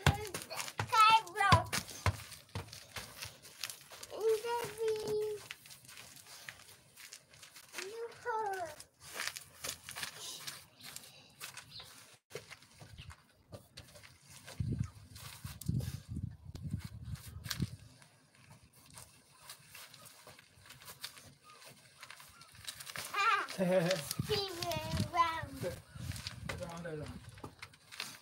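A small child squeals and babbles close by.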